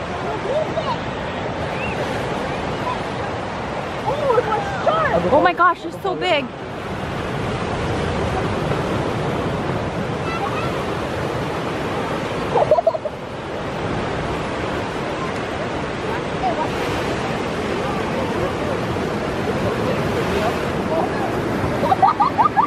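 Waves wash steadily onto a beach nearby.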